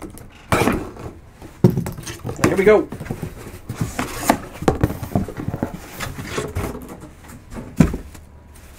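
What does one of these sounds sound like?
A cardboard box scrapes and thumps as it is handled.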